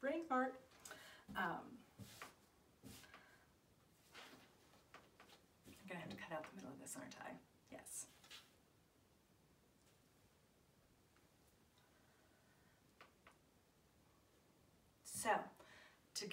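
A woman talks calmly to the listener, close by.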